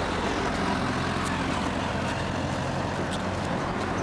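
A truck engine roars as the truck drives past.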